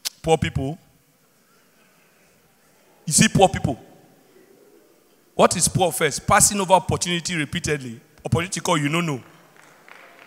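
A young man speaks with animation through a microphone in a large hall.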